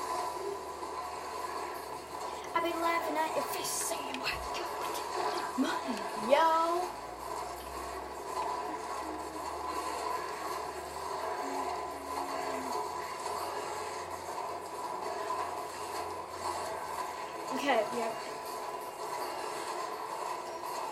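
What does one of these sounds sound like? Electronic game music plays from a television speaker.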